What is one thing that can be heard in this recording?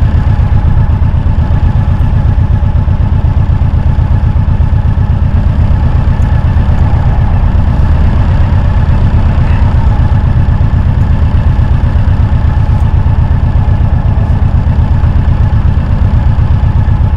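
A motorcycle engine idles close by with a steady, rapid throb.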